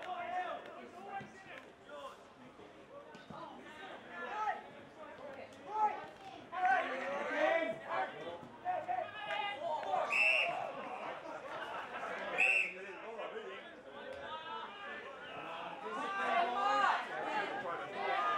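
Young players shout and call out to each other across an open field.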